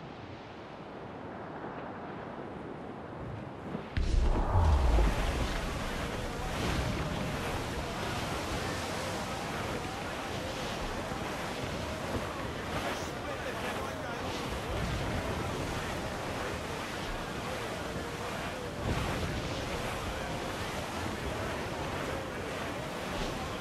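Wind blows hard through sails and rigging.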